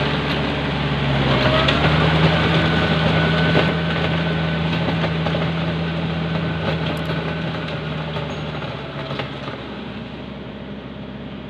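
A tractor engine rumbles steadily and slowly fades as it drives away.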